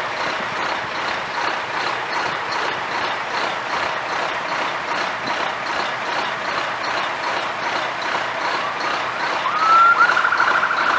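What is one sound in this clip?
Fire truck engines idle and rumble nearby.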